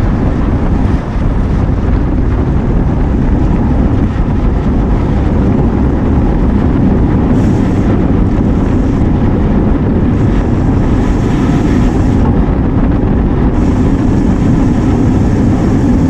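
Bicycle tyres hum on smooth pavement.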